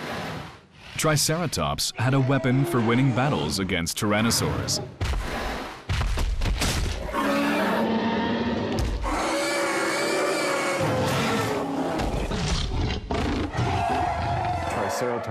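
A large beast roars loudly and deeply.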